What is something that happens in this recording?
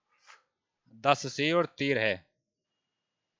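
A man speaks briefly and clearly into a headset microphone.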